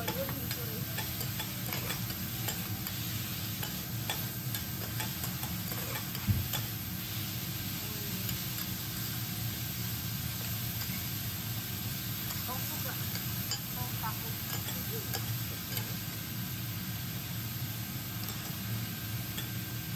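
Metal spatulas scrape and clink on a griddle.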